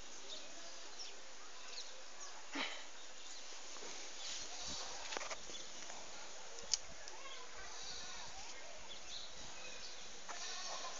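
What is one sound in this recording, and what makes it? Newborn goat kids bleat softly nearby.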